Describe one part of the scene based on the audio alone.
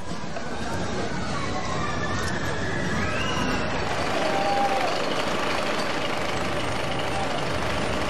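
Riders scream on a roller coaster.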